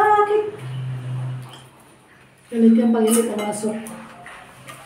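A middle-aged woman talks casually nearby.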